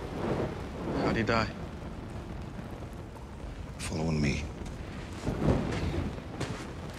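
A man speaks quietly and slowly, in short phrases.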